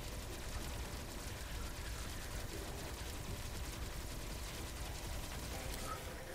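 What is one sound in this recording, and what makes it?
Laser blasts fire rapidly with electronic zaps.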